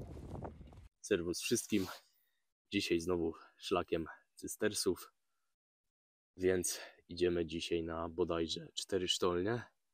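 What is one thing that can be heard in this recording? A young man talks calmly and close to the microphone.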